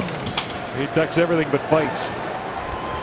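A puck clacks off a hockey stick.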